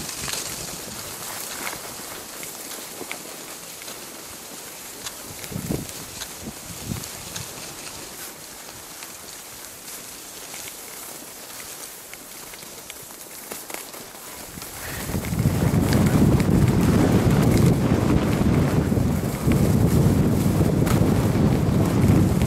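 Skis scrape and hiss over packed snow.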